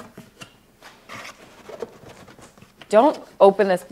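Cardboard rustles as a box is opened.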